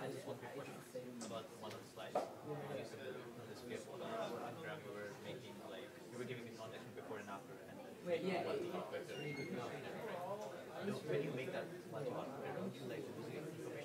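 Several people talk at once in a room with some echo.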